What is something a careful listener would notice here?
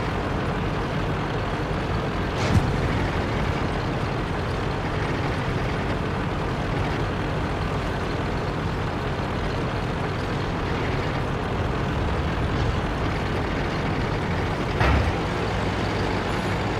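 Tank tracks clatter over rough ground.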